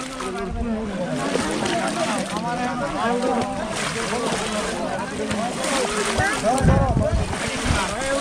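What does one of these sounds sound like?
Feet wade and splash through shallow muddy water.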